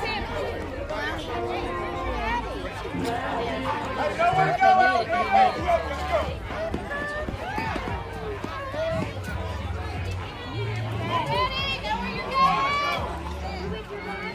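Young children shout and cheer excitedly outdoors.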